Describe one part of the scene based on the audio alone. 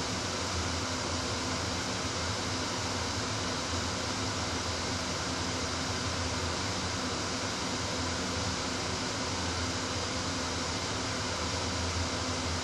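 A train's engine hums steadily at idle.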